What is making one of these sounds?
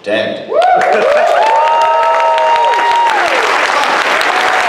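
An audience cheers and whoops.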